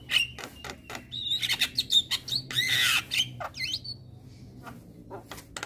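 A caged bird sings loud, varied chirps and whistles close by.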